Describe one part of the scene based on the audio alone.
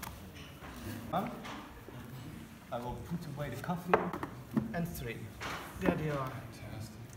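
Wooden boxes knock and scrape as they are handled.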